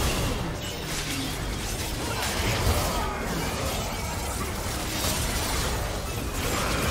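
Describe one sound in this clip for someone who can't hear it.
Spell effects crackle and burst during a video game battle.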